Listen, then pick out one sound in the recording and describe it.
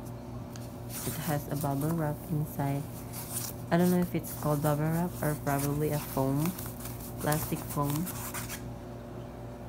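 A soft foam sheet rustles as hands handle it.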